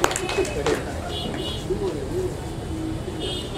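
A man speaks into a microphone through loudspeakers.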